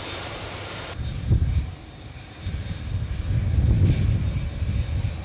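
A large jet's engines roar nearby.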